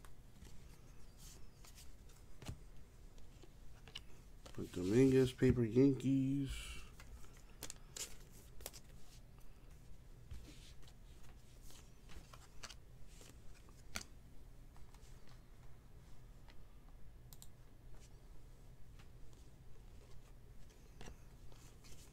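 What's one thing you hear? Trading cards click and rustle as they are flipped through by hand.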